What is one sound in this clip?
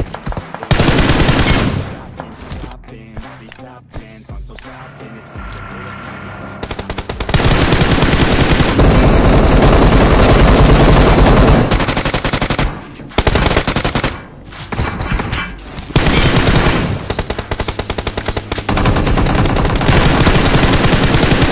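Rapid gunshots crack in a game.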